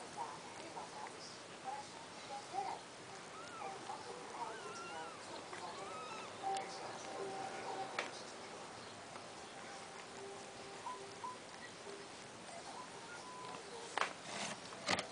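Newborn kittens squeak and mew in high, thin cries.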